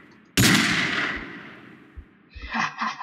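A pistol fires a single loud shot that rings out and fades.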